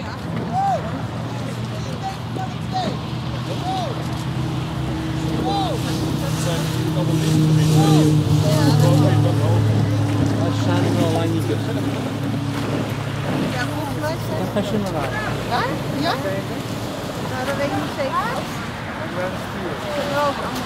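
Oars dip and splash in calm water.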